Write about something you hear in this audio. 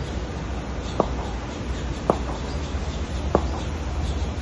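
A cricket bat knocks sharply against a ball a few times.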